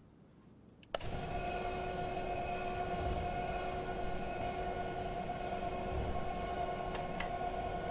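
A tyre machine whirs steadily.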